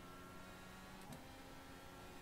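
A racing car engine drops in pitch briefly as it shifts gear.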